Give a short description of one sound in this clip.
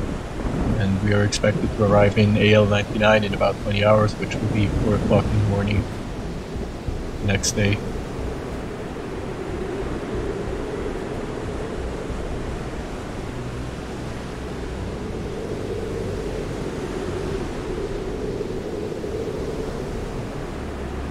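Rough sea waves churn and splash in a steady rush of water.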